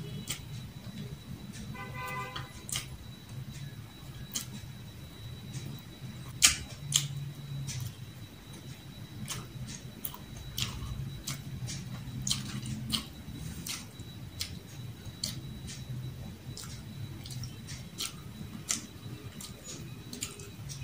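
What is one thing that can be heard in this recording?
Fingers squish and pick at sticky rice on a plate.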